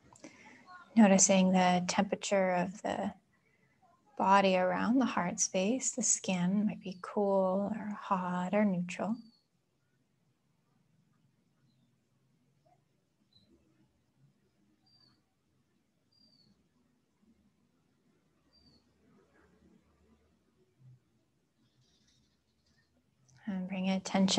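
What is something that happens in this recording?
A young woman speaks calmly and softly close by, with pauses.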